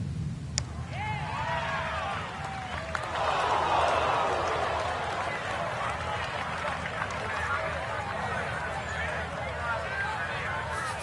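A crowd claps and cheers in the distance.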